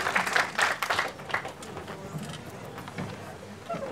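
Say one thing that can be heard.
An audience chatters quietly as people move about.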